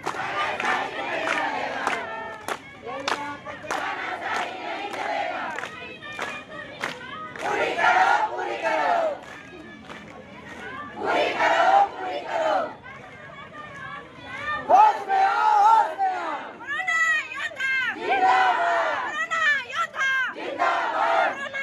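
A crowd of women and men chants slogans loudly outdoors.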